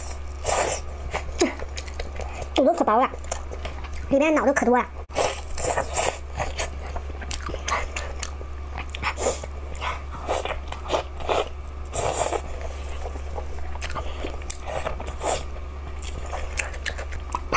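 A young woman chews food wetly and smacks her lips close to a microphone.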